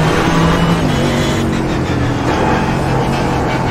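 A gearbox clicks as the driver shifts down.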